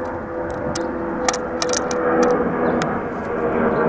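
A pipe wrench clicks and scrapes against a metal pipe.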